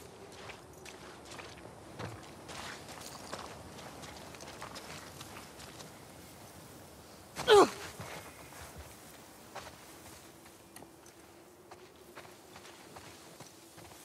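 Footsteps crunch over gravel and grass.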